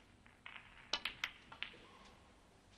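Snooker balls clack together as the pack of reds breaks apart.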